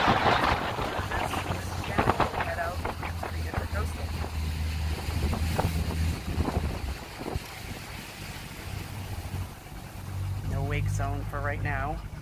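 An electric boat motor hums steadily.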